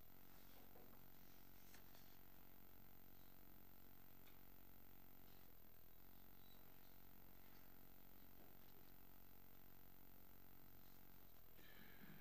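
An elderly man speaks quietly into a microphone.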